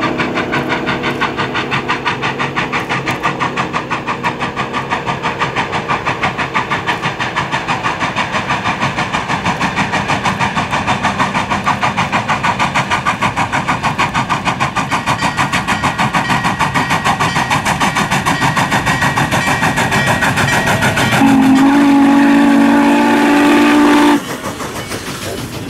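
A steam locomotive chuffs rapidly and loudly as it approaches and passes close by.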